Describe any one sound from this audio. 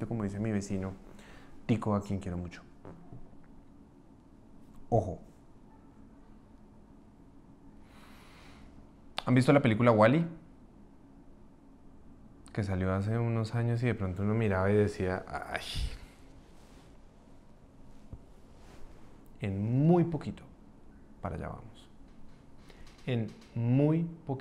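A man talks calmly and close to a microphone, with pauses.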